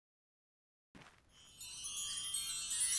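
A bright magical shimmer sparkles and swells.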